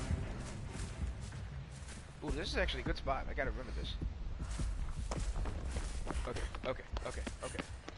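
Quick footsteps rustle through tall grass.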